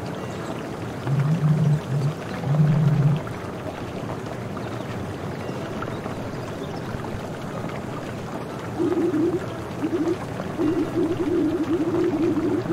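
Short electronic blips chatter in quick bursts, first low and then higher.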